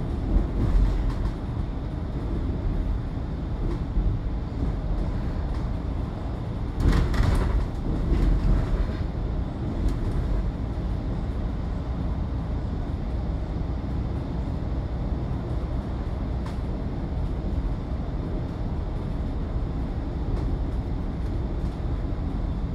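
Tyres hum on the road surface.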